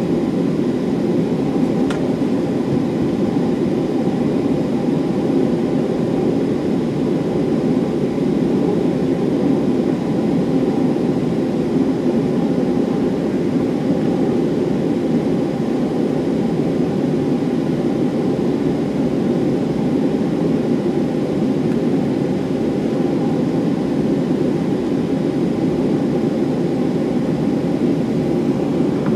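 Jet engines roar steadily inside an airliner cabin as it taxis.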